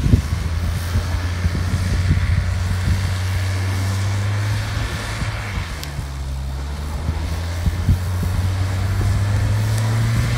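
Tyres spin and screech on the ground.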